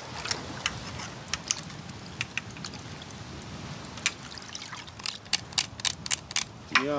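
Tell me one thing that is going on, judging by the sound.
Water sloshes in a metal pot.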